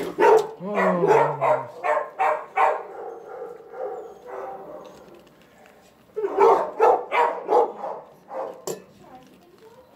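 A dog sniffs at the floor close by.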